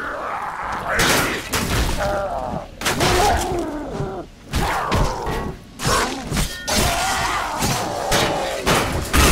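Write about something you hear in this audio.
A blade slashes and hits flesh with wet thuds.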